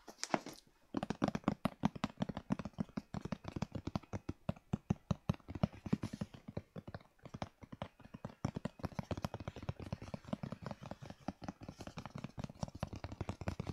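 Fingers tap and scratch on a cardboard box.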